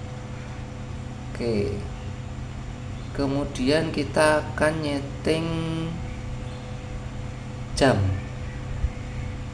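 Buttons on a small remote control click softly as they are pressed.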